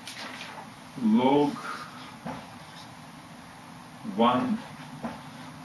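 A middle-aged man speaks calmly into a nearby microphone.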